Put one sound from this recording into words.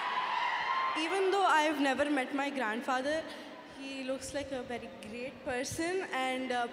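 A young girl speaks through a microphone.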